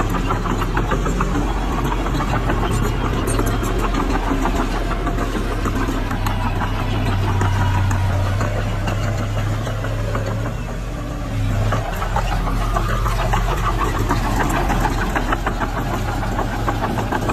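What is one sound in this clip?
Metal tracks of a bulldozer clank and squeak as it crawls over dirt.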